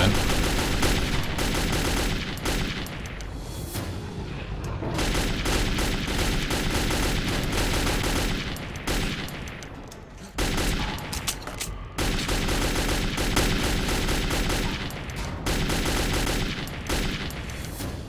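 An automatic rifle fires rapid bursts that echo down a tunnel.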